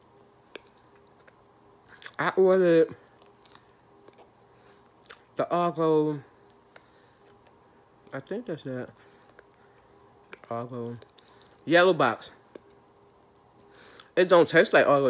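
A young woman chews something crunchy close to the microphone.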